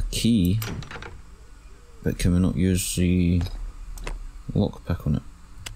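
A locked wooden door rattles as its handle is tried.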